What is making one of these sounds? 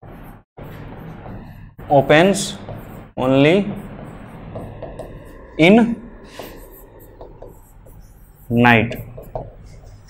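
A marker squeaks on a board.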